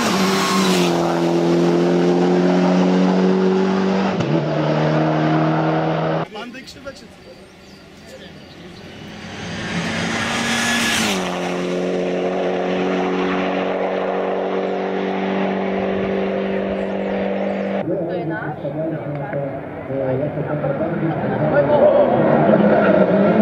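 A rally car's engine roars loudly at high revs as it speeds past.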